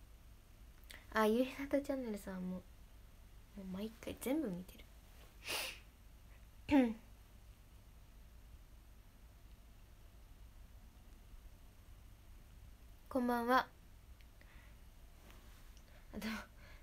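A young woman speaks softly and briefly, close to a microphone, with long pauses.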